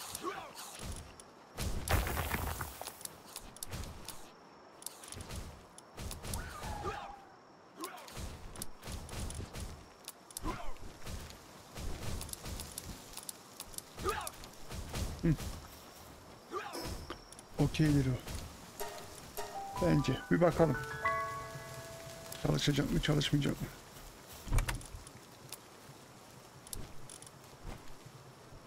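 Soft game menu clicks tick now and then.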